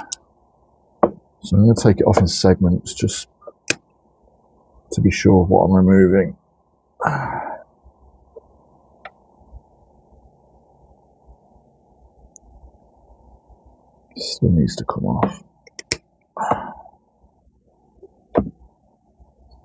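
Pruning shears snip through roots with short, crisp clicks.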